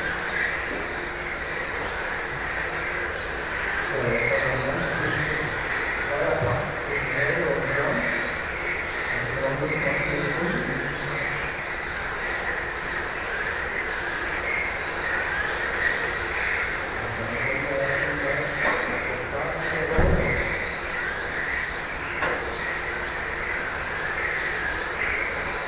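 Electric radio-controlled cars race past, their brushless motors whining up and down in pitch.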